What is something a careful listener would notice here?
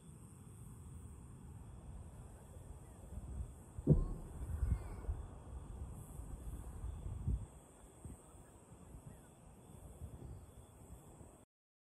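Fireworks boom and thud in the distance.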